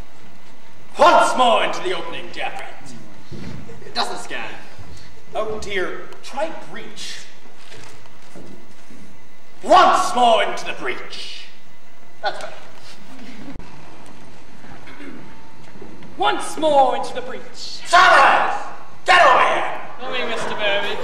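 A young man declaims loudly with animation on a stage with some echo.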